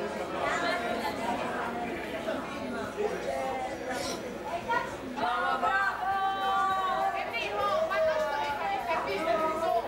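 A crowd of men and women chatters loudly nearby, with an echo.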